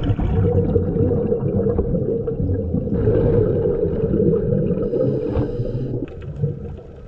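A diver's regulator bubbles and gurgles loudly underwater.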